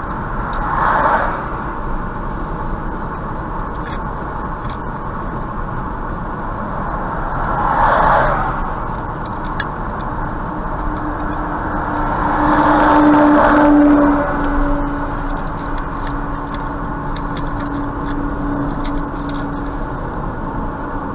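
Tyres roar steadily on a highway from inside a moving car.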